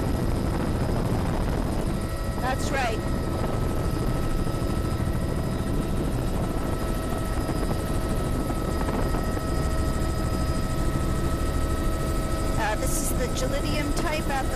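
An aircraft engine drones steadily up close.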